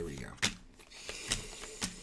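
Paper rustles and crinkles in a man's hands.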